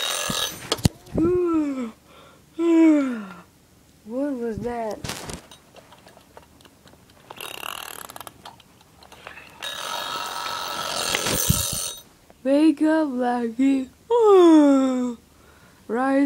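A toy gives out warbling, sliding calls.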